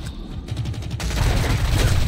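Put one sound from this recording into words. A submachine gun fires a rapid burst of shots.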